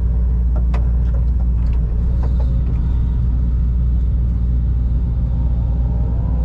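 A diesel engine rumbles steadily close by.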